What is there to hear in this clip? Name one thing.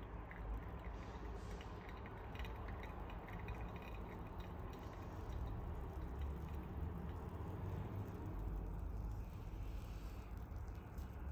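Wet coffee grounds fizz and crackle softly as bubbles pop.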